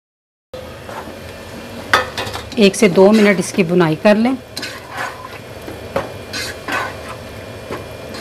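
A spatula scrapes and stirs inside a metal pot.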